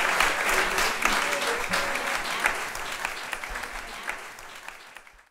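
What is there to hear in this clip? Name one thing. An audience applauds in a room, and the clapping slowly fades.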